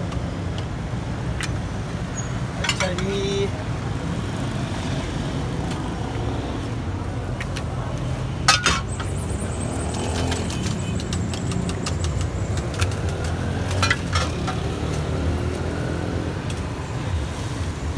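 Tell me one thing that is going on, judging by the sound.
Sauce splashes from a bottle into a clay pot.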